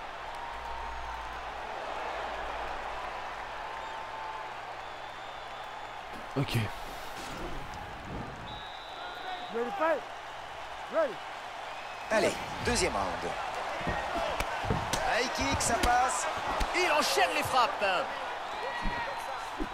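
Kicks and punches land with heavy thuds.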